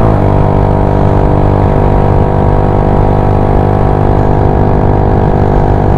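A scooter engine hums steadily at speed.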